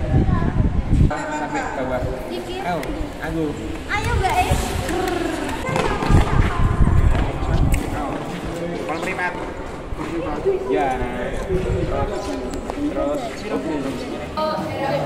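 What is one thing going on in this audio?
Teenage students talk with one another nearby.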